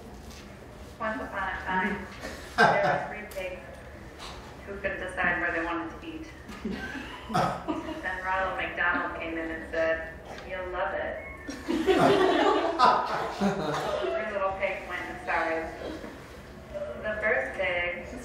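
A young woman speaks clearly to a room.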